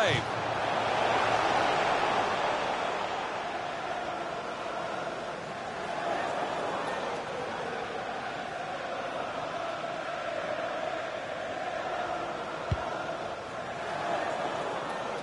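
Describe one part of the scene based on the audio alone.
A stadium crowd cheers and roars steadily.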